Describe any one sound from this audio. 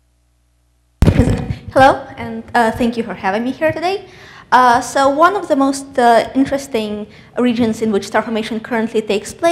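A woman speaks clearly through a microphone in a large hall.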